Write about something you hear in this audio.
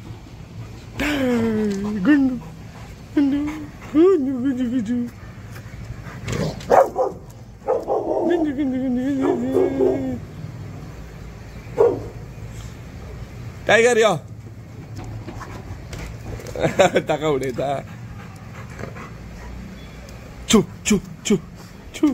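A dog whines and yelps close by.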